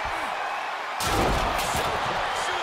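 A table crashes and breaks with a loud smash.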